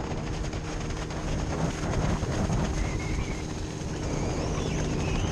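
Water skis hiss and slap across choppy water.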